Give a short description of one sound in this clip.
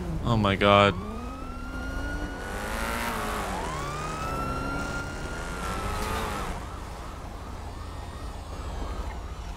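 A police siren wails and warbles nearby.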